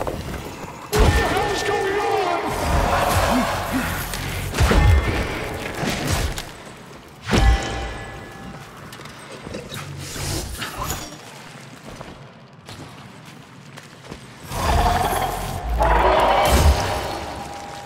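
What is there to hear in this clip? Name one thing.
A gun fires with loud bangs.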